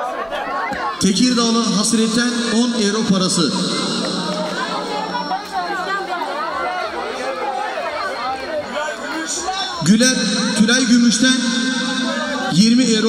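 Music blares from large loudspeakers.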